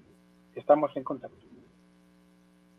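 A man speaks briefly through an online call microphone.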